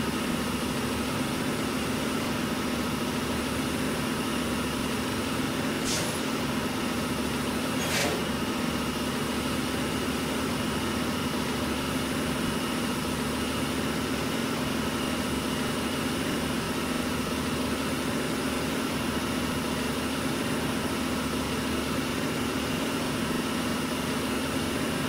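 A truck engine drones steadily while driving.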